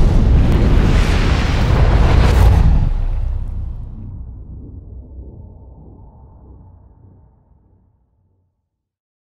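A fiery blast roars loudly and slowly fades away.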